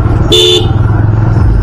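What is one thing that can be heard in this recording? A motorcycle horn beeps briefly.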